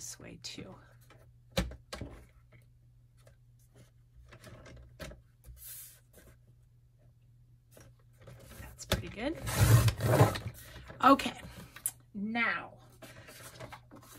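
Paper rustles and slides across a mat.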